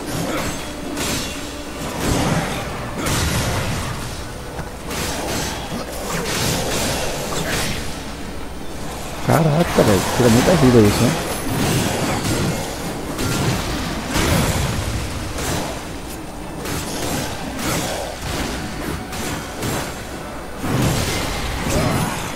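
Heavy weapon blows strike and shatter ice creatures with sharp cracks.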